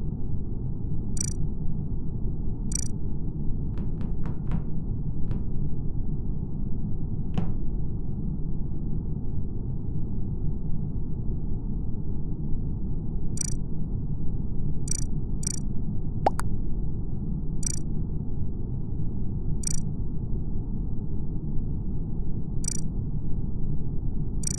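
A low steady hum drones throughout.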